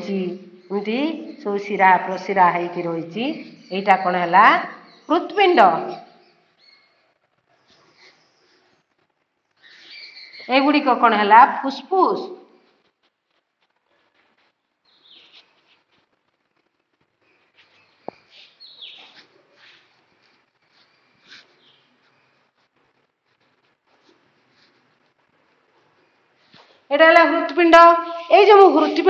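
A woman speaks clearly and calmly, close by.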